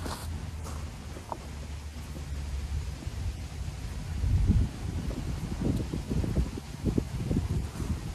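Loose material pours from a bag into a stone pit.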